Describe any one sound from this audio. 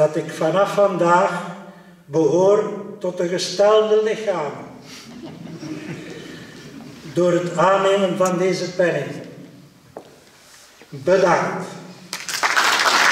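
An elderly man speaks calmly into a microphone over loudspeakers in an echoing hall.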